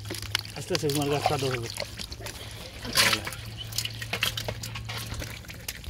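Wet mud slops into a bucket.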